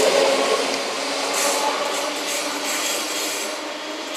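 A second train approaches along the track.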